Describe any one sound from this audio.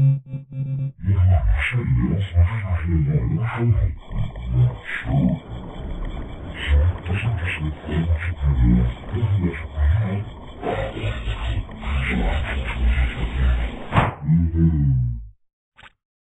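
A young character voice shouts angrily.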